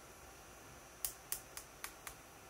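Fingers tap and click on a small hard device close by.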